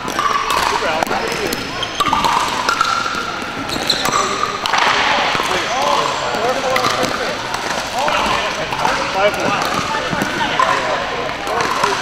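Paddles knock against a ball in quick rallies.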